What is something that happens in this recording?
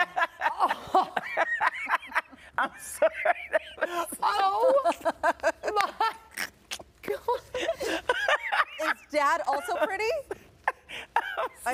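A young woman exclaims and laughs.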